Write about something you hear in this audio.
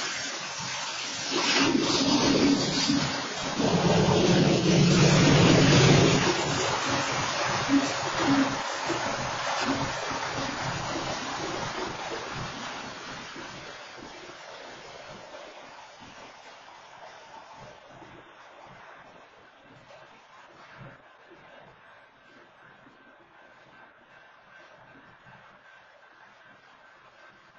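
A freight train rumbles and clatters past on the tracks, loud at first and then slowly fading.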